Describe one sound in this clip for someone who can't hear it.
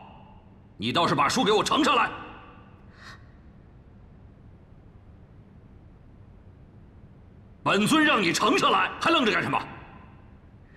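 A man speaks sternly and loudly.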